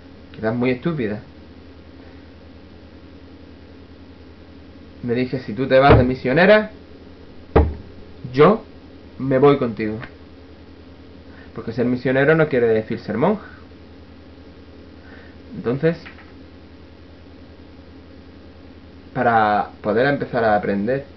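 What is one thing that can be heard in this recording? A young man speaks close to a microphone in short, calm bursts with pauses between them.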